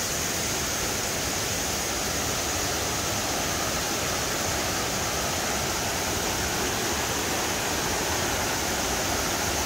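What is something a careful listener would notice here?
A stream rushes steadily over rocks nearby.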